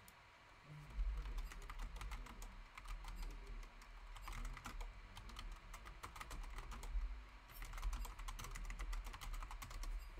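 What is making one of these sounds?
Keys clatter quickly on a keyboard as someone types.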